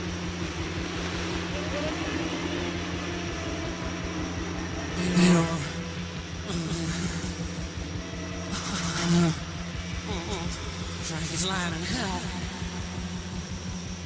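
An elderly man talks calmly into a close microphone.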